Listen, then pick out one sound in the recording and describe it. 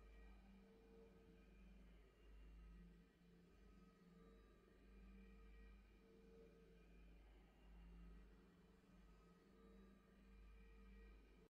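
A game's victory music plays with a swelling, ringing tone.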